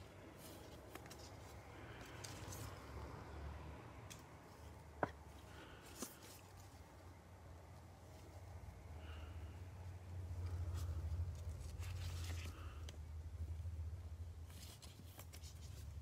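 A plastic sleeve crinkles and rustles as a card slides into it.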